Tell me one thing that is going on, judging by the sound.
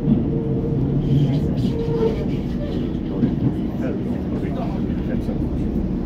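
An oncoming train rushes past close by.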